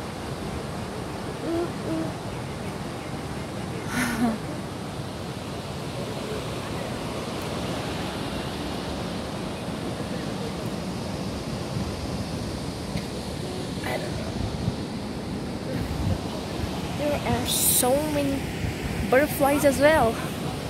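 Wind rushes steadily outdoors.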